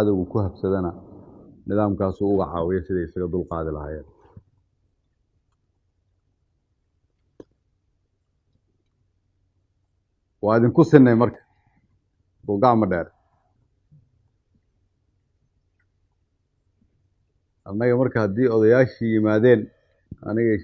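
A man speaks calmly and steadily into a microphone, with pauses.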